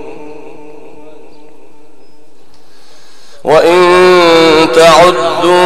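A man chants in a long, drawn-out voice over a loudspeaker, growing suddenly loud partway through.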